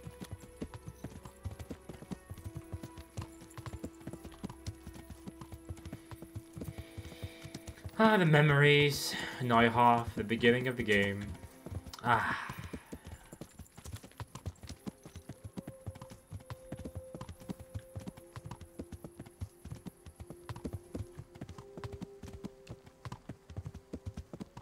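A horse's hooves trot steadily on a dirt road.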